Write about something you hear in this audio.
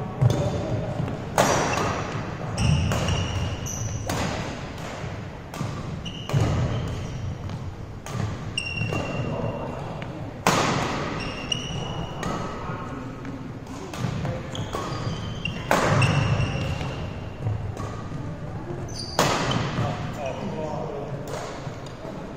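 Rackets sharply strike a shuttlecock back and forth in a large echoing hall.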